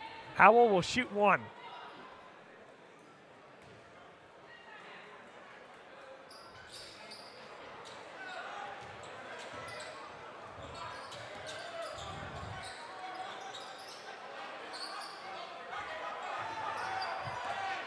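A crowd murmurs and cheers in a large echoing gym.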